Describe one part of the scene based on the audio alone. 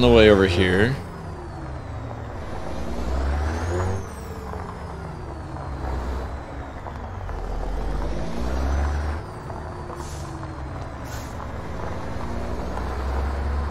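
A truck's diesel engine rumbles deeply, rising and falling as the truck drives slowly.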